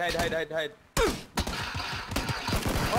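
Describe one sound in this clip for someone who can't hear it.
Rifle shots crack nearby.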